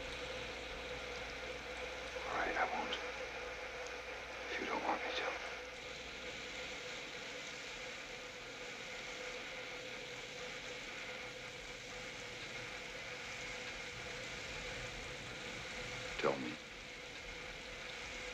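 Water sprays steadily from a shower.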